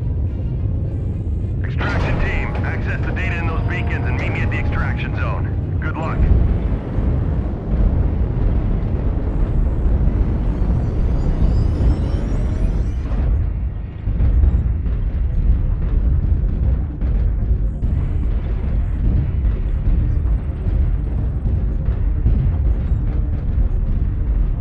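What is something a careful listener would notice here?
A heavy walking machine rumbles deeply and steadily.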